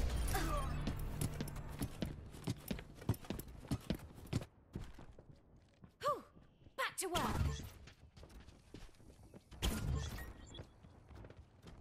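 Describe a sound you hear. Quick footsteps patter on hard ground in a video game.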